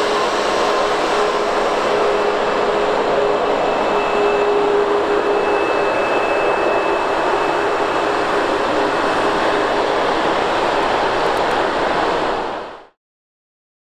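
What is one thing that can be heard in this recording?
A jet engine roars and whines steadily as an airliner taxis past.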